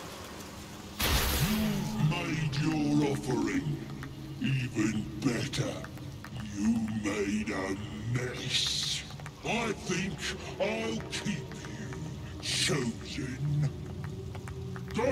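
A deep, growling male voice speaks slowly and menacingly, close by.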